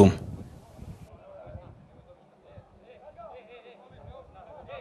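Men call out to each other at a distance outdoors.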